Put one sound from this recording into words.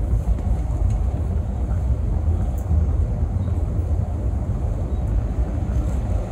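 An elderly man speaks into a microphone, heard over loudspeakers.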